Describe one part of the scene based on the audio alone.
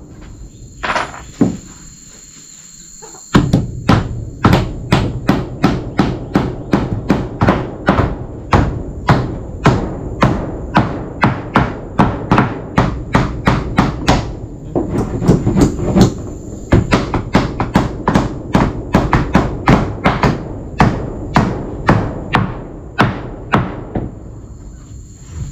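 A hammer taps nails into wooden boards in quick repeated blows.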